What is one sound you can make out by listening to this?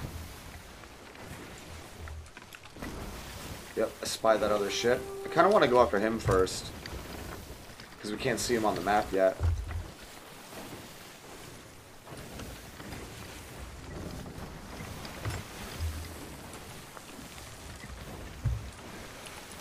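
Stormy sea waves roll and splash around a ship.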